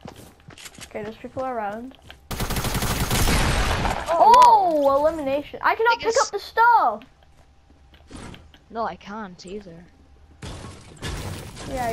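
A teenage boy talks excitedly into a close microphone.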